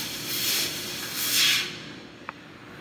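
A laser cutter hisses and crackles as it cuts metal.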